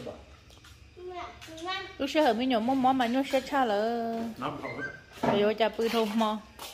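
A young child talks and calls out loudly nearby.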